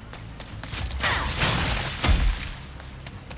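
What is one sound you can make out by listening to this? Wooden crates smash and clatter apart.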